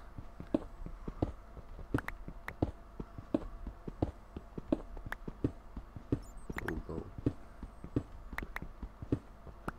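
A pickaxe chips rapidly at stone blocks with sharp knocks.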